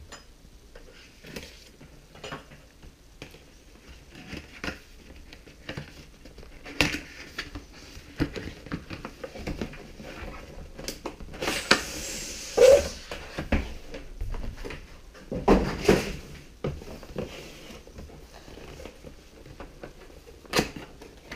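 Cardboard packaging rustles and scrapes as it is handled.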